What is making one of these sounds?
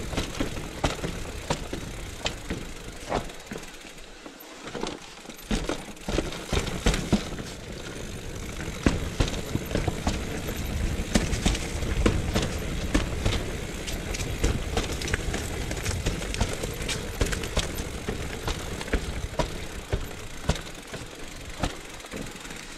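Bicycle tyres rumble and clatter over rough stone steps.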